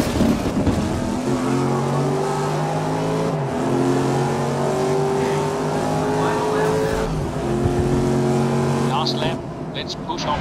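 A racing car engine roars loudly, climbing in pitch and dropping at each gear change.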